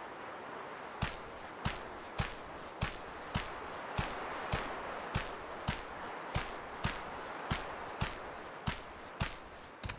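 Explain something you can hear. Footsteps crunch quickly on gravelly ground.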